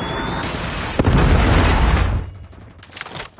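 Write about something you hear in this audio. A heavy explosion booms.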